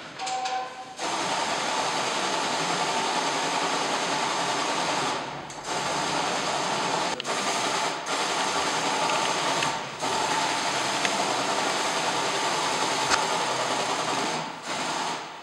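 A pressure sprayer hisses steadily as it sprays mist.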